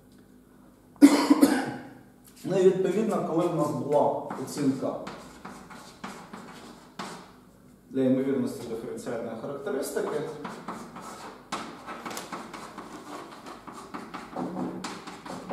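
A man lectures calmly in a room with a slight echo.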